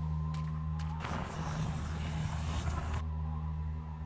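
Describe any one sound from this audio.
A magical whoosh swells as a lantern lights up.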